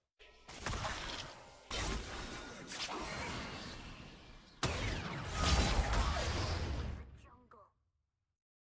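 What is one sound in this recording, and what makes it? Game spell effects whoosh and crash.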